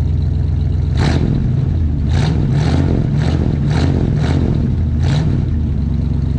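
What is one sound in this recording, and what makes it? A car engine revs sharply several times, its exhaust roaring in short bursts.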